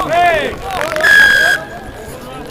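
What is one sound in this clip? A referee's whistle blows sharply outdoors.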